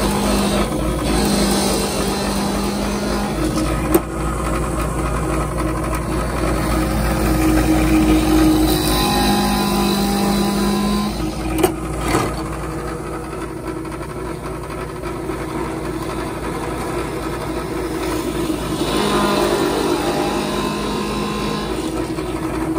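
A drill bit grinds into wood in several short bursts.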